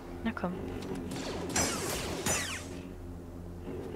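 A lightsaber hums and swishes through the air.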